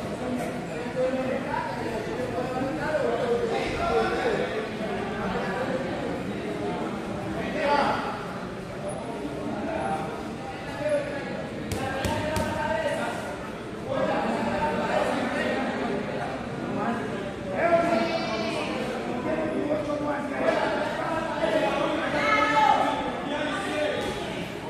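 Many people chatter throughout a large echoing gym.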